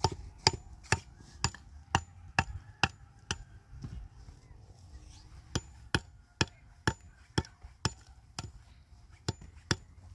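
A hammer taps sharply on a concrete block at a steady pace.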